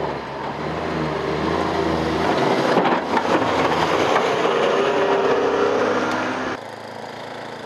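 A heavy plow truck roars past.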